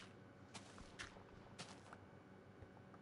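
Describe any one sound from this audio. Dirt blocks crumble and break with soft crunches.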